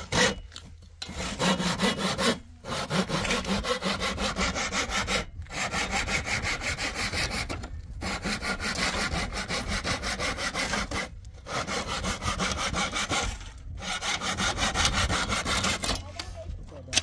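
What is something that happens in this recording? A hand saw rasps rapidly back and forth through wood.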